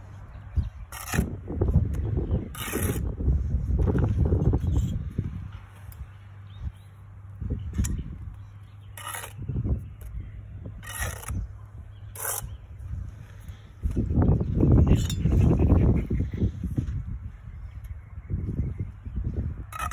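A brick taps and knocks as it is set into place.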